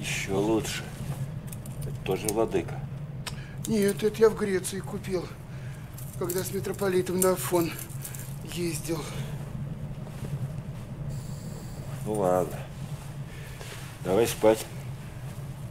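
An elderly man speaks in a low, calm voice close by.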